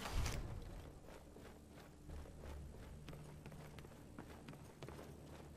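Footsteps tread steadily across a wooden floor in a large echoing hall.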